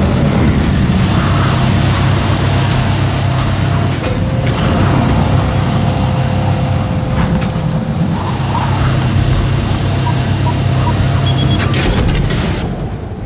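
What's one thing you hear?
A spacecraft's engines roar loudly and steadily.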